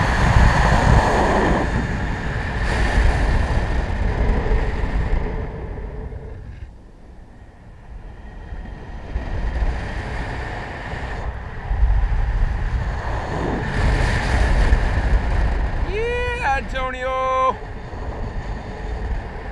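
Wind rushes and buffets loudly, rising and falling.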